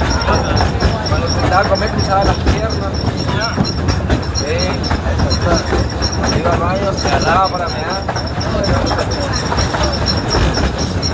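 A train rumbles and clatters steadily along its tracks.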